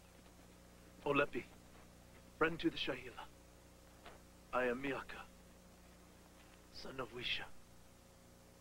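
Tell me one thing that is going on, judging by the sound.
A man speaks loudly and forcefully nearby.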